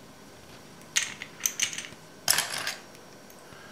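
Seashells clatter into a plastic tub.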